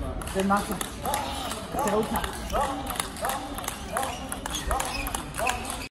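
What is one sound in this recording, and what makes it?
Shoes squeak on the hall floor.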